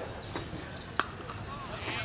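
A cricket ball cracks off a bat.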